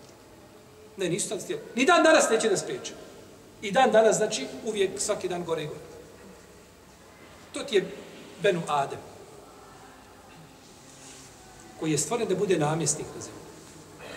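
A middle-aged man talks calmly, close to a microphone, pausing between phrases.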